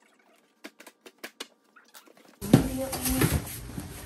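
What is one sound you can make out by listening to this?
Cardboard box flaps rustle open.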